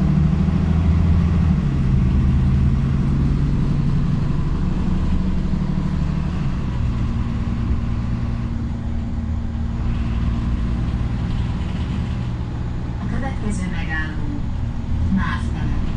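A bus engine hums steadily, shifting pitch as it drives along.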